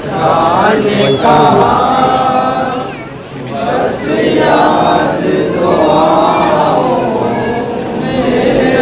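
A man chants loudly into a microphone in a long, wavering voice.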